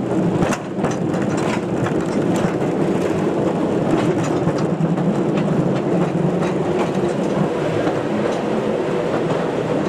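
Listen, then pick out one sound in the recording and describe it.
Metal wheels clack over rail joints.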